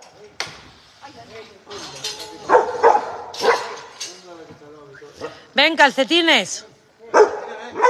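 A metal gate rattles and clanks.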